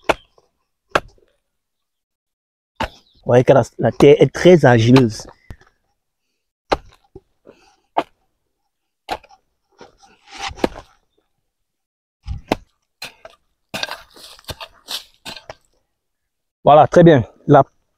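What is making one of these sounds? A hoe chops into soft earth with dull thuds.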